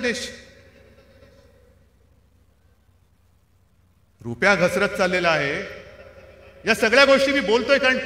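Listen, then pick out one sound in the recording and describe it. A man speaks forcefully into a microphone over loudspeakers, with pauses between phrases.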